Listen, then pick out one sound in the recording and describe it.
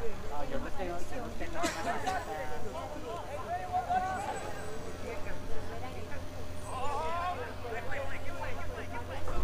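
A crowd of men and women talks and calls out nearby, outdoors.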